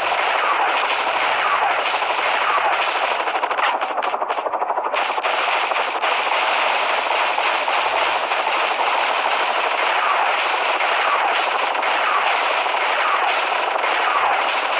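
A helicopter's rotor whirs steadily.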